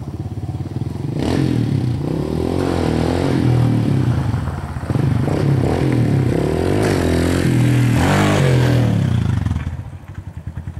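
A dirt bike engine revs as the bike approaches.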